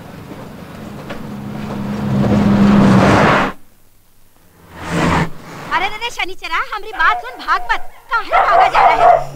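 A car engine roars as it rushes past.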